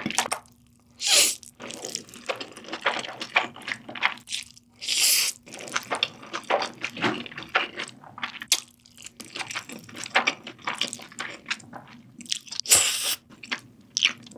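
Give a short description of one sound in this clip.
A young woman slurps noodles loudly, close to the microphone.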